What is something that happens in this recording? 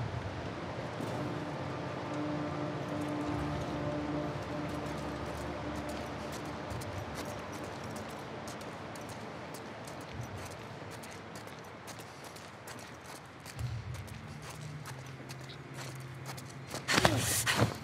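Soft footsteps creep across a hard floor.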